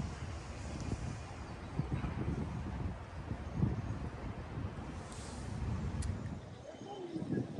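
Wind blows and gusts outdoors.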